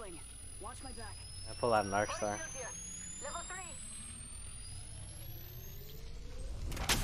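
A game healing device charges with a rising electronic whine.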